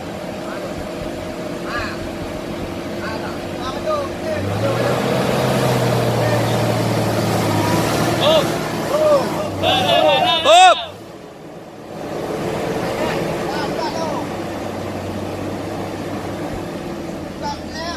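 Men shout nearby outdoors.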